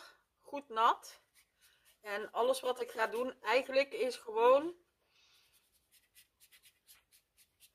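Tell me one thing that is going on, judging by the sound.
A paintbrush softly strokes across paper.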